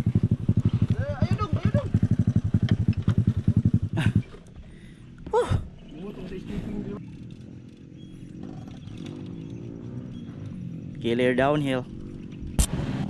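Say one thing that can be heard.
A dirt bike engine revs up and down.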